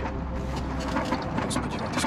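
A young man speaks up close.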